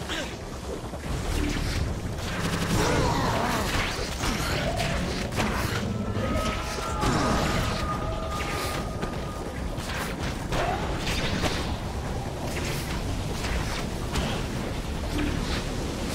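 Electricity crackles and zaps in bursts.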